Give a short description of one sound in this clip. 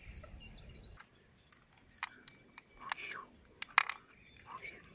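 Hands scrape and knock on wet mussel shells close by.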